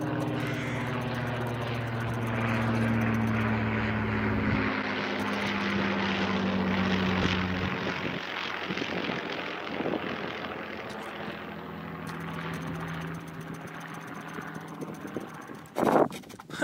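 A propeller plane engine drones overhead and slowly fades.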